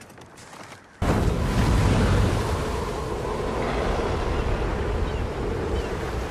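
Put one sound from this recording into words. Waves surge and roar against rocky shore.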